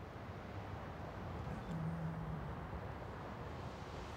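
Gentle sea waves wash softly onto a shingle beach.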